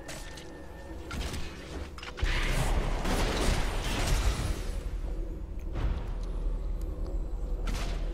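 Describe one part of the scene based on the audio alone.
Magical spell effects whoosh and crackle in a fight.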